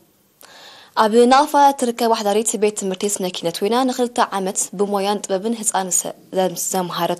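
A young woman reads out the news calmly and close to a microphone.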